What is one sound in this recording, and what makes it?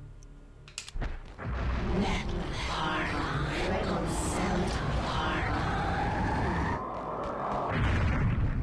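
A shimmering magic spell swirls and hums.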